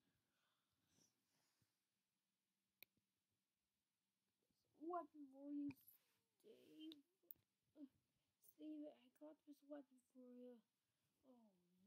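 A plush toy rustles softly against a carpet.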